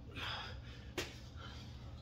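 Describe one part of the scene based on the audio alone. Dumbbells knock on the floor.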